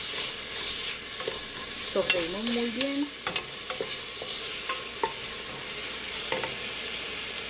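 A wooden spoon scrapes and knocks against a metal pot.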